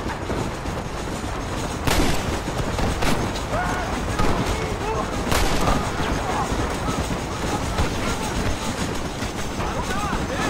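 A steam locomotive chugs and hisses nearby.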